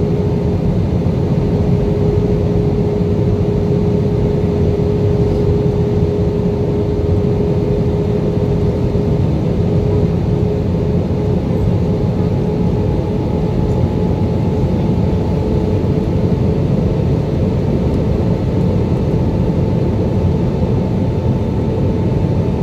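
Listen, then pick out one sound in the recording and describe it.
A jet engine roars steadily with a low, constant hum and a faint whine.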